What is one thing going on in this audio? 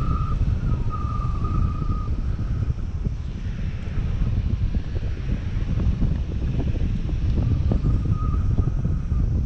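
Strong wind buffets a microphone outdoors.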